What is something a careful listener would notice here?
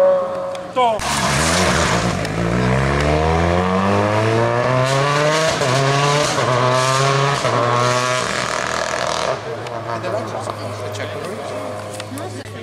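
A second rally car engine revs loudly and roars away.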